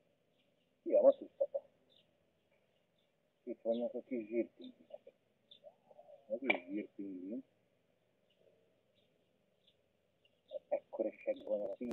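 Young birds call in bursts from a nest.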